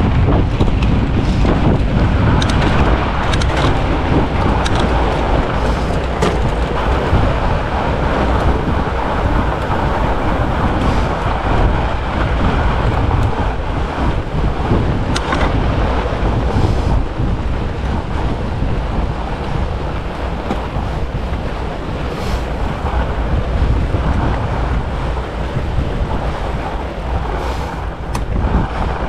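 Bicycle parts click and rattle over bumps.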